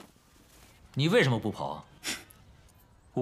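A young man asks a question.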